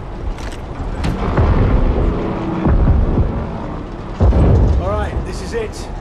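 Aircraft engines drone loudly overhead.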